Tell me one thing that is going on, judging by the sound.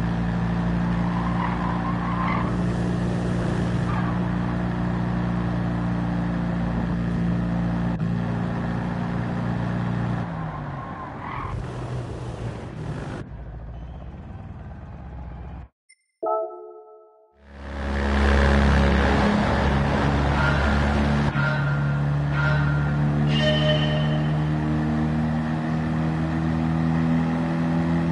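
A small car engine buzzes steadily at speed.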